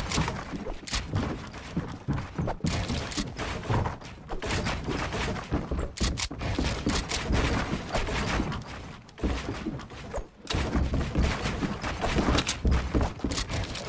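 Wooden building pieces snap into place with rapid clacks.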